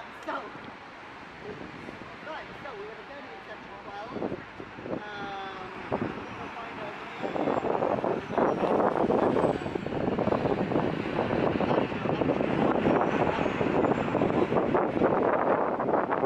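A group of men and women chat nearby outdoors.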